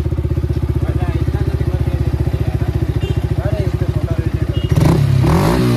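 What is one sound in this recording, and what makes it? A motorcycle engine idles with a steady, fast putter.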